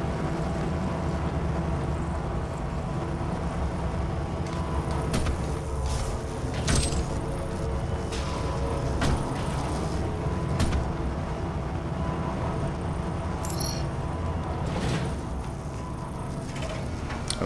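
A low mechanical hum drones steadily throughout.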